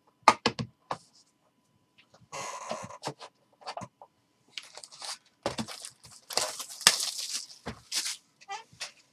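Plastic wrap crinkles as hands handle a box.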